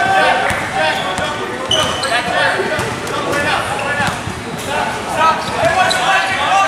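Young boys shout to each other in a large echoing hall.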